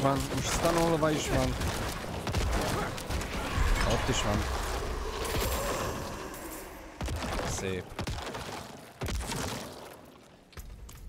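Magic blasts and impacts crackle and boom from a video game.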